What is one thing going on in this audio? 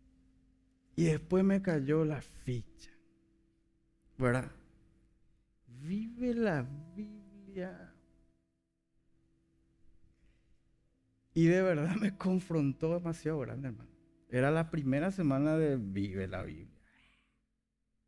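A man speaks with animation through a microphone and loudspeakers in a large hall.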